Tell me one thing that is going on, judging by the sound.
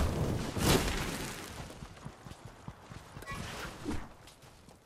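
Footsteps patter quickly across the ground.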